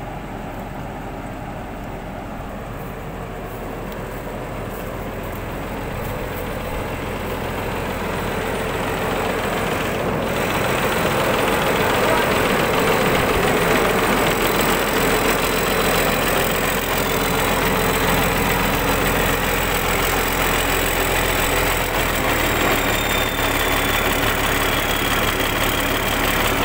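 A harvester engine runs with a steady loud rumble, growing louder up close.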